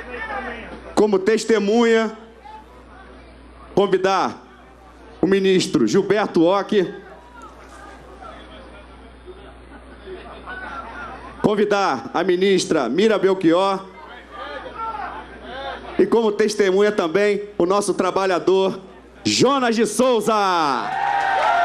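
A man speaks with animation through a loudspeaker, echoing outdoors.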